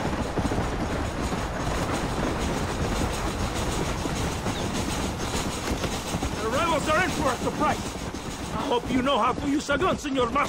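Horse hooves gallop over dry ground.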